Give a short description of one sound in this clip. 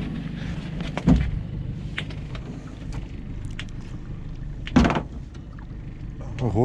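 Water splashes as a fish thrashes at the surface close by.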